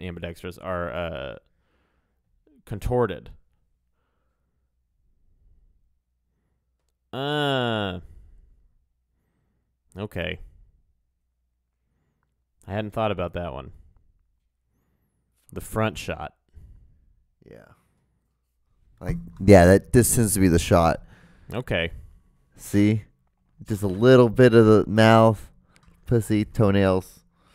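A man speaks with animation close to a microphone, with pauses in between.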